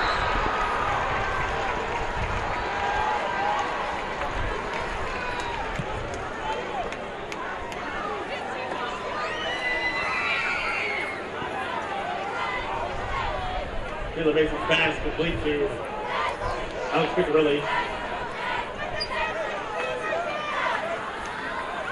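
A crowd murmurs and cheers in an open-air stadium.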